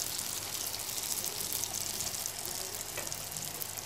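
A spatula scrapes against a pan as food is stirred.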